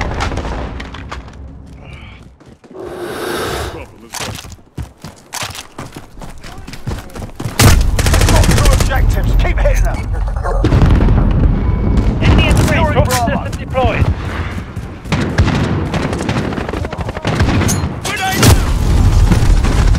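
Rifle gunfire rattles in sharp bursts.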